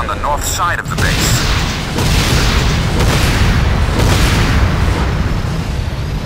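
Loud explosions roar and crackle.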